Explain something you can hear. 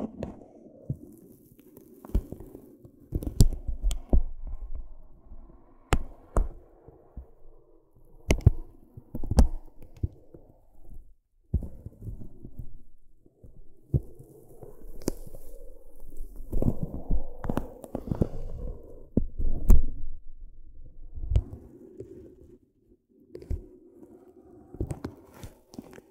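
A chalk stick taps on paper.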